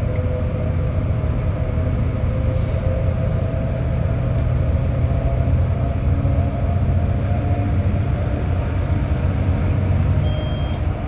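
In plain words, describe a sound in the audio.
Traffic roars and echoes through a tunnel.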